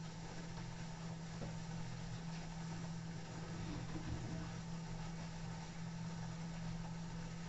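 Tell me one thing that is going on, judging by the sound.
Laundry tumbles and swishes inside a washing machine drum.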